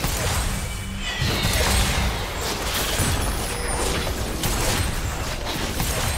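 Game weapons strike with sharp hits.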